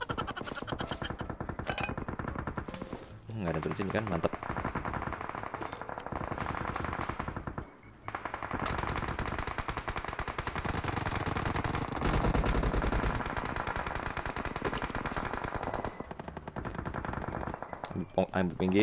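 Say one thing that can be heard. Quick footsteps patter steadily in a video game.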